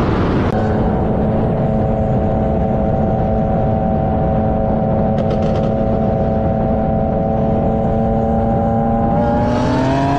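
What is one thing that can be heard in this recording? A car engine drones steadily at speed, then revs higher near the end.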